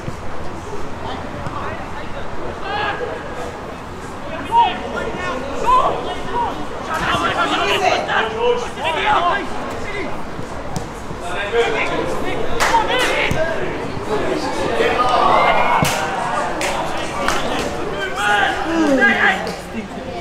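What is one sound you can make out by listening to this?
Young men shout to each other across an open outdoor pitch.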